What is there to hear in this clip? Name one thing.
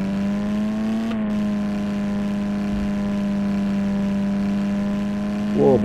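A van engine hums steadily as it drives.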